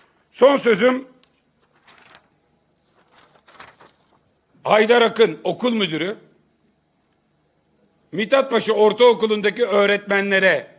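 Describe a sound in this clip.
A middle-aged man speaks forcefully into a microphone, with pauses.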